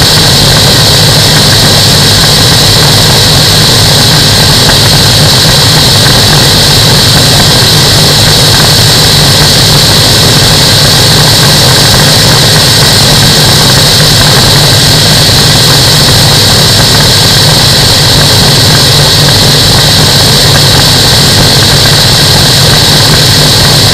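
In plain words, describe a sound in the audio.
A small aircraft engine drones steadily and loudly.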